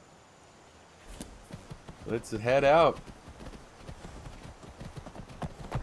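A horse's hooves thud on grass at a steady walk.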